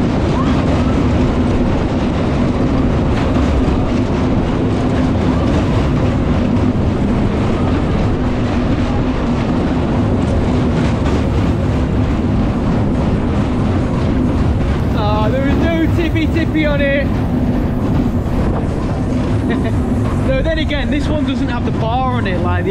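Wind rushes loudly past throughout.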